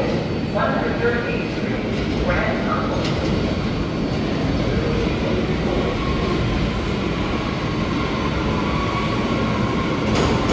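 A subway train rumbles steadily closer into an echoing station.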